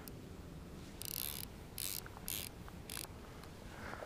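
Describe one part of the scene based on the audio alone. A fishing reel buzzes as line is pulled from it in short bursts.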